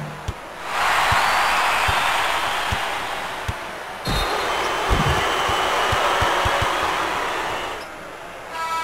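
A crowd roars and cheers loudly.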